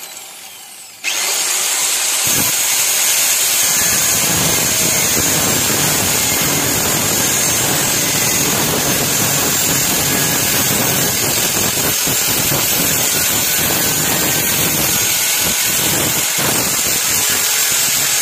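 An angle grinder disc grinds harshly against metal and glass.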